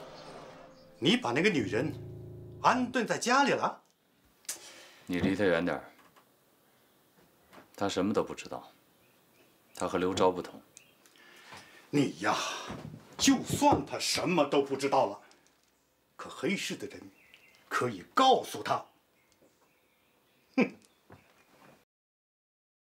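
An elderly man speaks sternly, close by.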